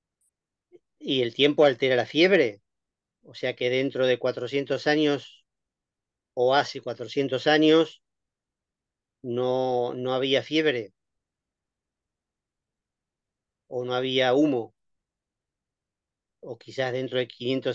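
A middle-aged man speaks calmly over an online call, in short phrases with pauses.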